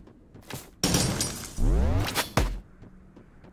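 A magic spell bursts with a zap.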